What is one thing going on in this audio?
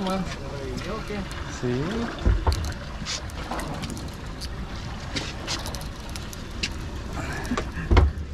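A fishing reel clicks and whirs as line is wound in.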